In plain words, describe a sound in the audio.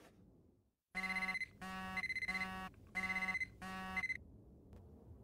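A phone alarm beeps in a repeating pattern.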